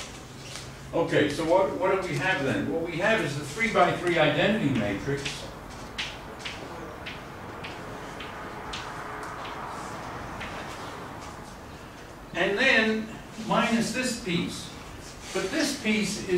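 An elderly man speaks calmly, lecturing.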